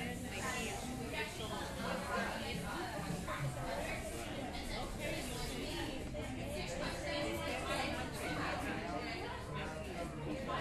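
Many people chatter in the background, indistinct and steady.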